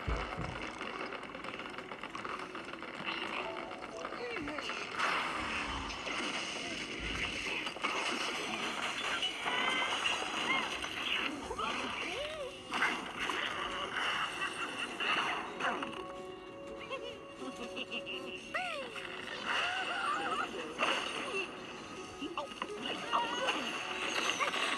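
Cheerful game music plays from a small tablet speaker.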